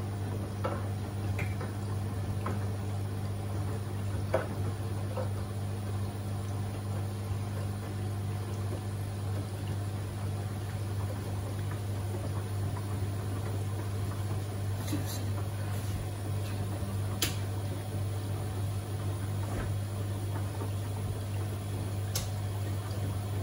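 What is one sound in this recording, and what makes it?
Water sloshes and splashes inside a washing machine.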